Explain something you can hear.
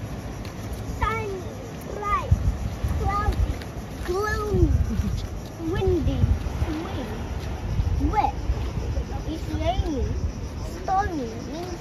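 Young children talk and call out nearby.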